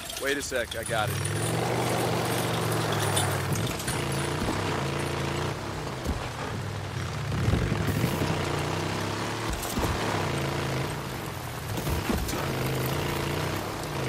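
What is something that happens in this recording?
A motorcycle engine rumbles and revs as it rides along.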